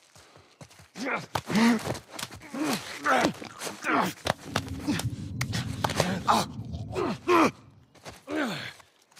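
A second man gasps and chokes.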